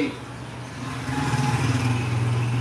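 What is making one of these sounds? A motorcycle engine hums as it passes outside.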